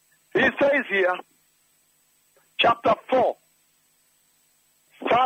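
A man preaches forcefully into a microphone.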